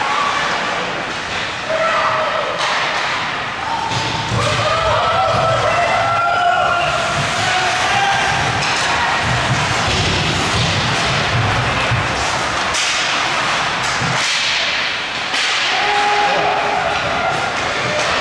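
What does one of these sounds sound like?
A crowd of spectators shouts and cheers in an echoing rink.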